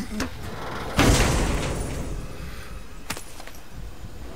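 A heavy chest lid creaks open with a burst.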